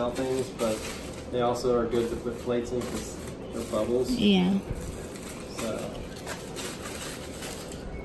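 A plastic mailer bag crinkles in a man's hands.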